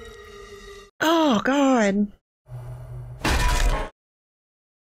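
A young woman laughs into a microphone.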